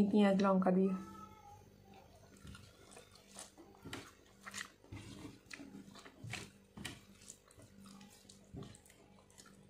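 A young woman chews and smacks her lips.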